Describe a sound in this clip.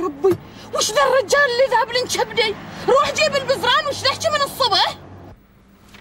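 A woman speaks angrily and loudly, close by.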